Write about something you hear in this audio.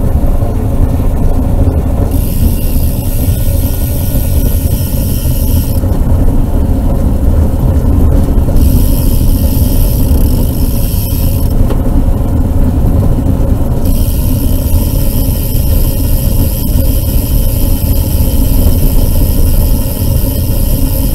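Tyres roll and hum on a paved road.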